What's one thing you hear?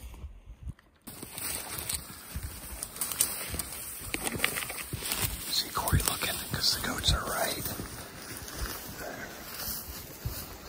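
Footsteps crunch through snow and brush.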